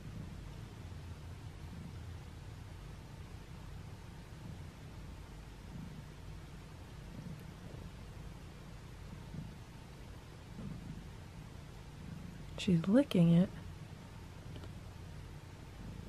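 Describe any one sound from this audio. A cat chews food up close.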